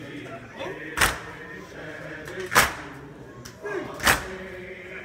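A crowd of men beat their chests in loud, slow slaps.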